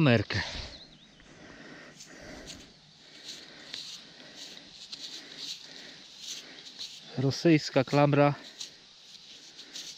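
Gloved hands crumble and break apart a clump of damp soil.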